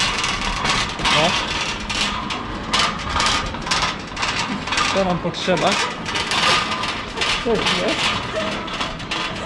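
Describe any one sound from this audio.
A metal trolley rattles as it rolls over a hard floor.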